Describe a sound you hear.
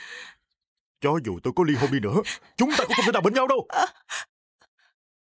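A man speaks forcefully up close.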